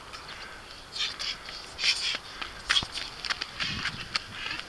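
Small footsteps patter on pavement.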